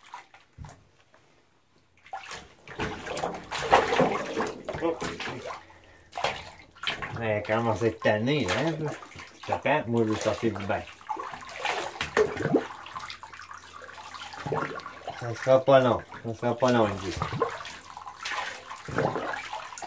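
Water splashes and sloshes as a dog moves in a shallow bath.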